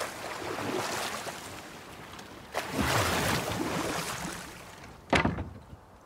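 Water splashes against a small rowing boat.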